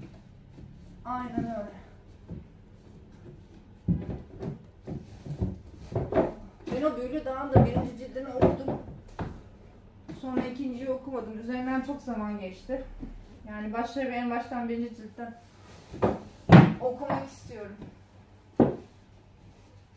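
Books knock and slide onto wooden shelves.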